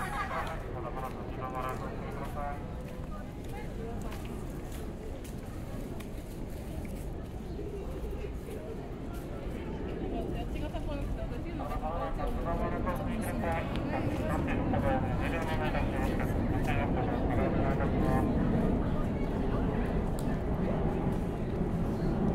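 A crowd of men and women chatters nearby outdoors, growing louder and livelier.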